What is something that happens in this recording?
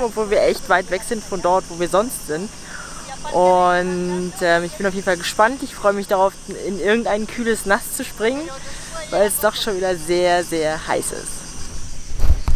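A young woman talks cheerfully and closely to a microphone.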